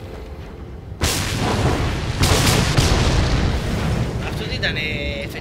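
A fire bursts into a loud roaring blaze.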